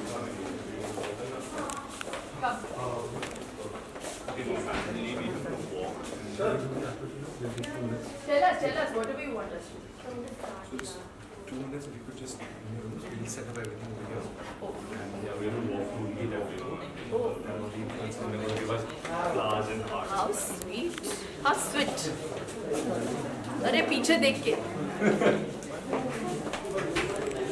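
A crowd of people chatter around, close by.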